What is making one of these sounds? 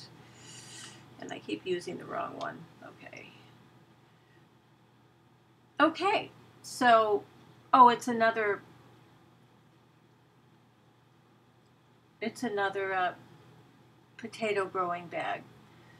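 A middle-aged woman speaks in short, halting phrases close to a microphone.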